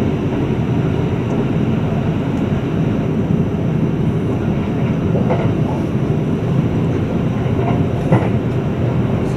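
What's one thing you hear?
An electric express train rumbles along the track at speed, heard from inside a carriage.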